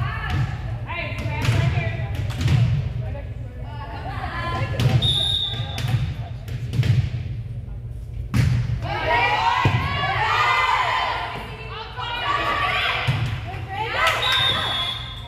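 Young women call out and cheer loudly in an echoing gym.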